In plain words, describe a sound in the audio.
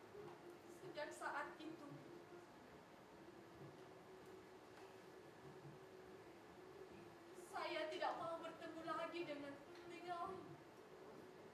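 A young woman speaks, heard from a distance in a hall.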